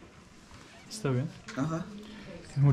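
A man asks a question and says thanks nearby.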